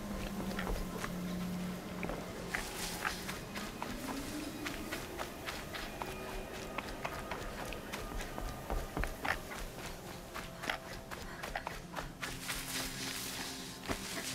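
Grass and brush rustle as someone pushes through.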